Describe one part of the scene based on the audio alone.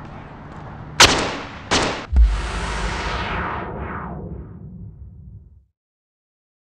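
Gunshots ring out with a loud echo.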